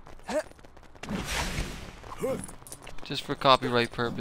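A magic spell fizzes and shimmers with a sparkling whoosh.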